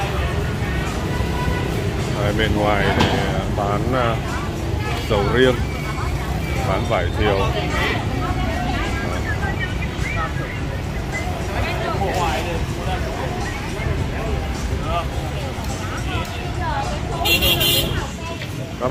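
Motorbike engines hum and pass by on a busy street.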